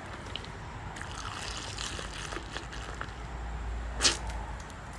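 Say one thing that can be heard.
A young man gulps down a drink quickly.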